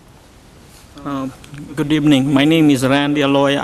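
A young man speaks calmly into a microphone, heard through a loudspeaker in a large room.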